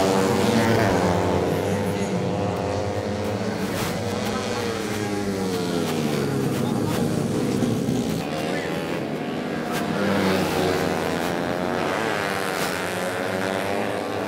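Several four-stroke 130 cc underbone racing motorcycles scream past at full throttle, their pitch sliding down as each goes by.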